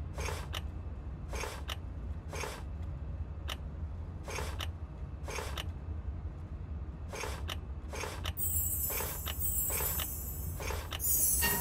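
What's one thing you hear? Game tokens click and slide into place with a soft whoosh.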